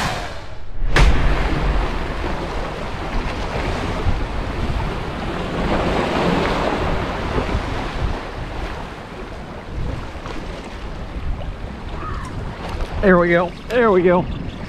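Wind blows across the microphone outdoors.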